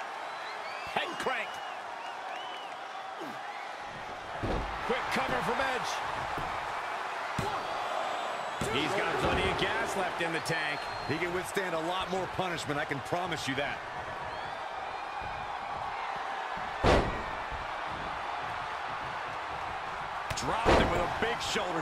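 Bodies slam onto a wrestling ring mat with heavy thuds.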